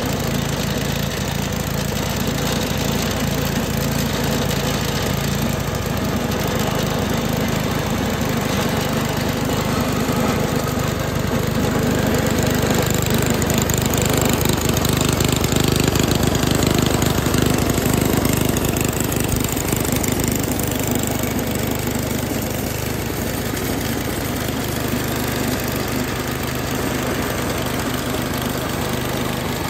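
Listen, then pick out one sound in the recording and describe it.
A small petrol engine idles with a steady chugging rumble close by.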